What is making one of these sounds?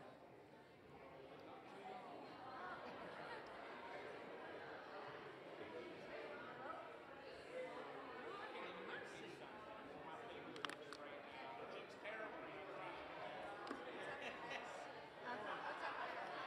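Many men and women chat and greet each other in a large echoing hall.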